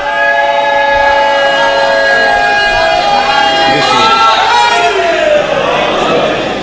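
A large crowd of men chants together in a loud, echoing hall.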